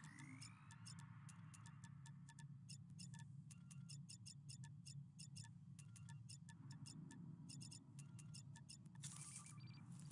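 A countdown timer beeps rapidly and steadily.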